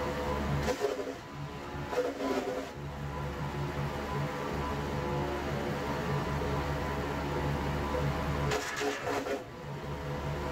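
A garden chipper crunches through leafy branches.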